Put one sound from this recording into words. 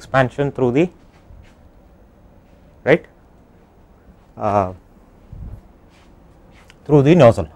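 A man speaks calmly into a clip-on microphone, in short bursts with pauses.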